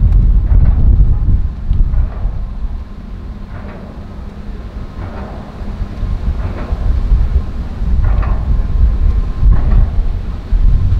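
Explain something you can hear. A boat's hull slaps and splashes through choppy water.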